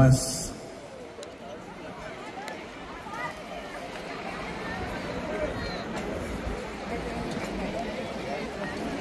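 A crowd of men and women chatters outdoors at a distance.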